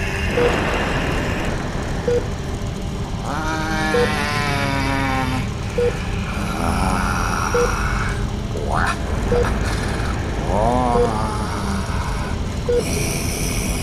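A clock ticks at a slow, steady pace.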